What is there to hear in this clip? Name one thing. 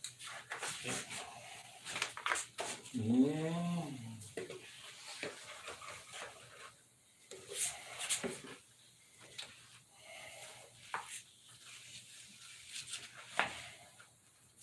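A plastic sheet crinkles and rustles as it is folded.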